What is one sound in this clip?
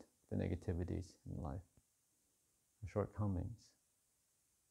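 A man speaks calmly and slowly, close to the microphone.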